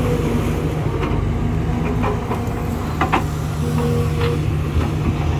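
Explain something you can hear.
Metal clanks as an excavator bucket moves.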